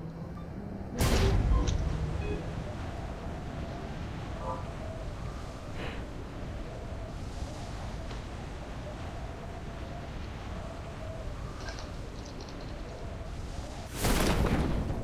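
Wind rushes loudly during a fall.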